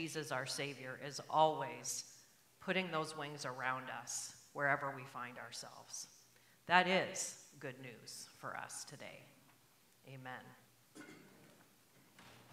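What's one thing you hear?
An elderly woman speaks calmly into a microphone.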